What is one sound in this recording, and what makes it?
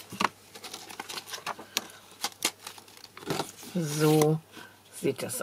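Plastic packaging crinkles and rustles as hands handle it up close.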